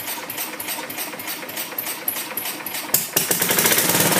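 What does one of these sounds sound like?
A small engine's electric starter cranks rapidly.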